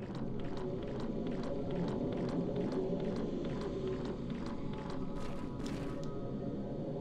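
Footsteps walk at a steady pace on a hard floor.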